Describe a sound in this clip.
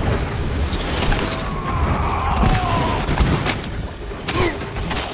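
A horse gallops over hard ground.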